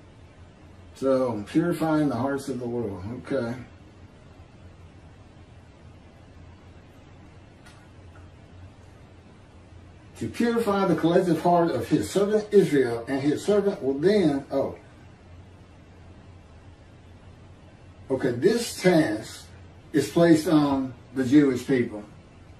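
A middle-aged man speaks calmly in bursts over an online call.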